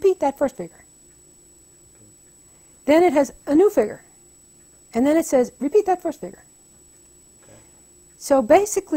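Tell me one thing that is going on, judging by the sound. An elderly woman speaks thoughtfully in short bursts, close to a microphone.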